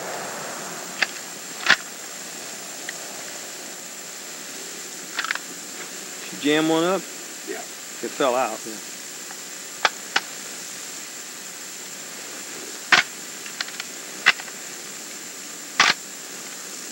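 Metal parts of a rifle click and clack as it is handled.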